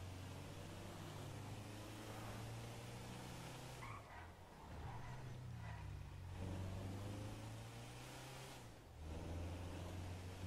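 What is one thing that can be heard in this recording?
A van engine hums steadily as it drives, revving up and easing off.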